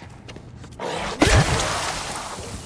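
An axe swings and strikes flesh with a heavy, wet thud.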